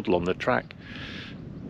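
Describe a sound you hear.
A middle-aged man speaks briefly and calmly, close to the microphone.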